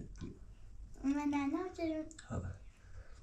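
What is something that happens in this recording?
A young child speaks with a high voice, close by.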